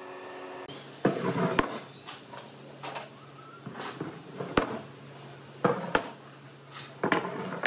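Wooden boards knock and thud onto a workbench.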